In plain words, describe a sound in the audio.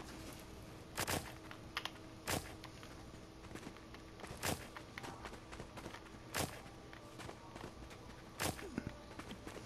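A garden tool thumps into soft soil every two seconds or so.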